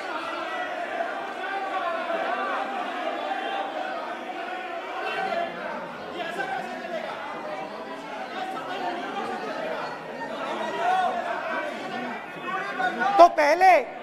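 Men in the background shout and call out.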